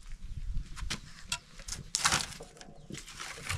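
Wooden logs knock and scrape as they are pushed into a fire.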